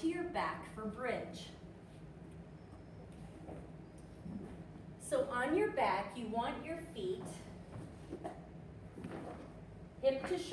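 A woman speaks calmly and clearly in an echoing room.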